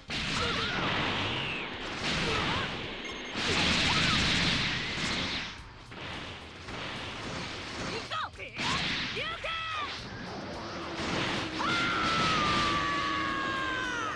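Energy blasts roar and crackle in bursts.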